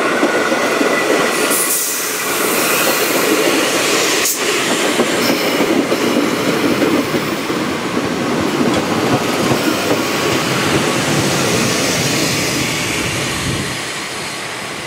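An electric train rumbles past close by, wheels clattering on the rails.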